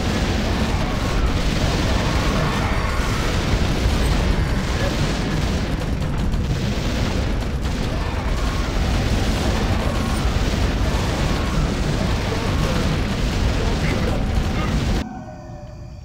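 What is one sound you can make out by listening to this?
Game battle sounds of clashing weapons and magic blasts crackle densely.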